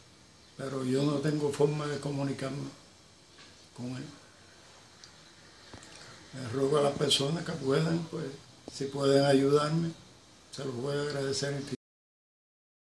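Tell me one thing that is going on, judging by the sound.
An elderly man speaks calmly and close by, in bursts with pauses.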